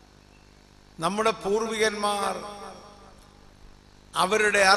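An elderly man speaks with animation into a microphone over a loudspeaker, with a slight echo.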